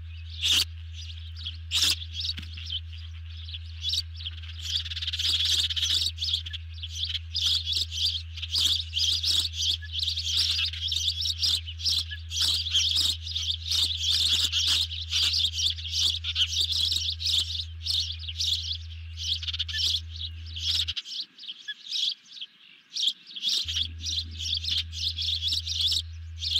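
A bird chirps and cheeps rapidly and shrilly, close by.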